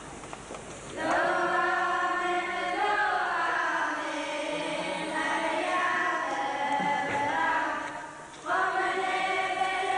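A group of voices sings a hymn together in an echoing hall.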